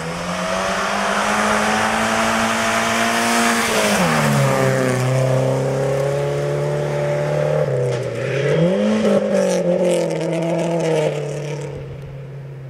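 Tyres crunch and spray over loose gravel.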